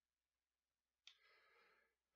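Small plastic pieces click together.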